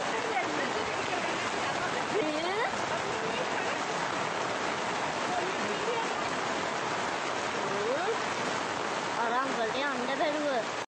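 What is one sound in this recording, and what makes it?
Floodwater rushes and roars steadily.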